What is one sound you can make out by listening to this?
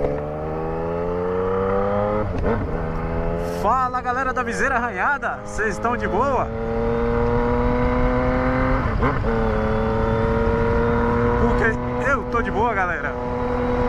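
A three-cylinder sport-touring motorcycle cruises at highway speed.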